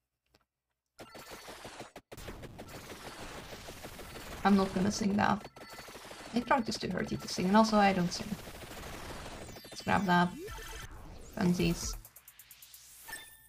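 Busy electronic game sounds and music play.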